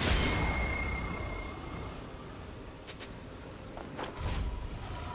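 Game spell effects whoosh and burst in short bursts.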